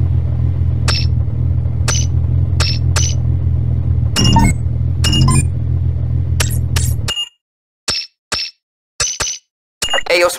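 Menu beeps sound in short, quick bursts.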